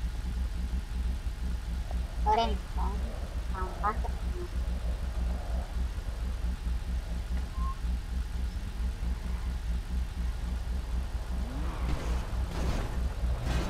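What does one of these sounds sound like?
A car engine idles with a low, steady rumble.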